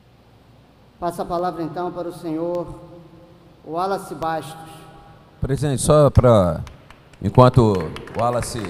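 Another man speaks calmly through a microphone.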